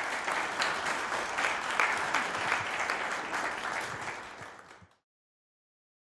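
An audience applauds in a room, then the clapping fades away.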